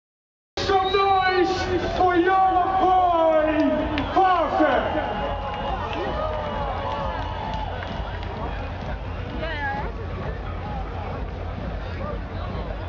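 A large crowd cheers and sings loudly outdoors.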